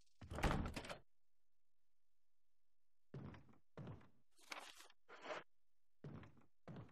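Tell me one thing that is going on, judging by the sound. Heavy footsteps thud slowly on a wooden floor.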